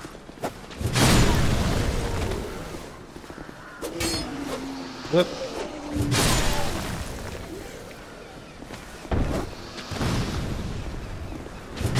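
A heavy sword whooshes through the air.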